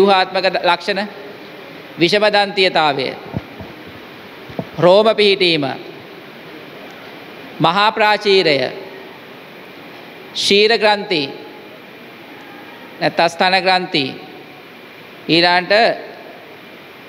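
A young man reads aloud in short bursts with pauses, in a room with a slight echo.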